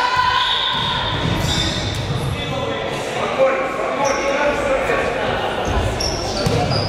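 A crowd of young people chatters and cheers in a large echoing hall.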